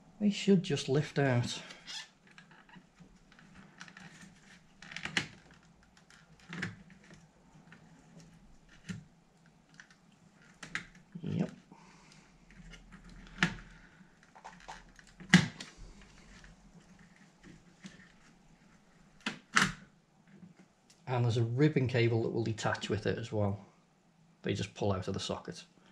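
Hands handle plastic computer parts with clicks and knocks.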